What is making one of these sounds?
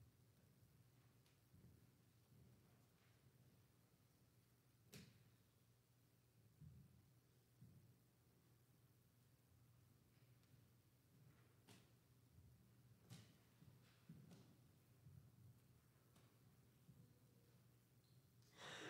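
Footsteps tap on a hard floor in a quiet, echoing hall.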